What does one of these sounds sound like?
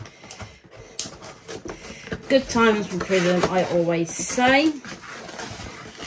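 A cardboard flap rips open.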